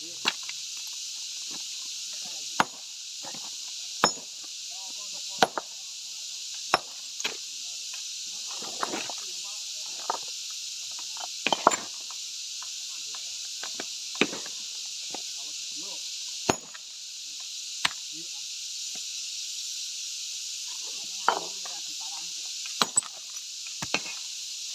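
A sledgehammer strikes stone with sharp, ringing cracks.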